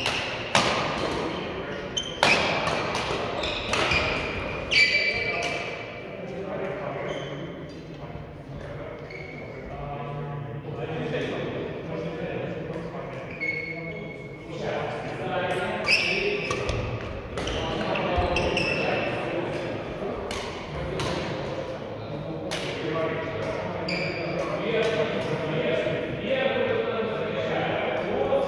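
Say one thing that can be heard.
Badminton rackets sharply smack shuttlecocks again and again in a large echoing hall.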